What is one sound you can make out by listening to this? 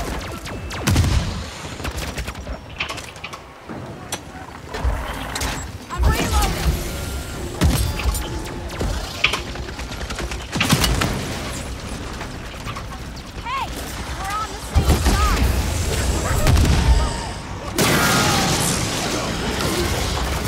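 Gunfire and explosions boom loudly.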